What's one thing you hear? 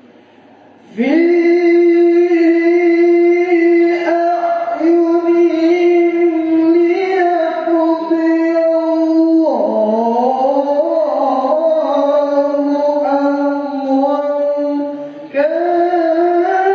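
A man chants loudly and melodiously through a microphone in an echoing hall.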